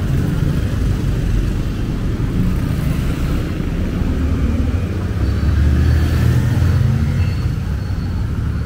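Tyres hiss on wet asphalt.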